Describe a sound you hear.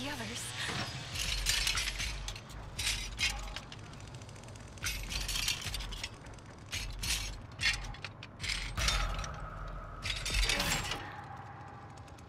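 Small metal parts click and rattle as someone tinkers with a device.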